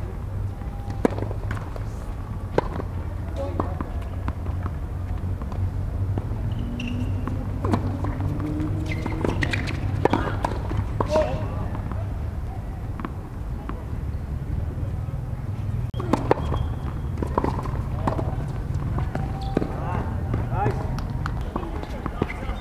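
Tennis rackets strike a ball with sharp pops, back and forth.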